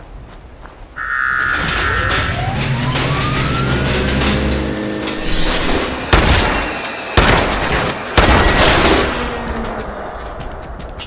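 A machine whirs and clanks loudly.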